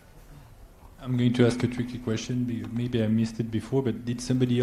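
A man speaks into a microphone, loud and clear.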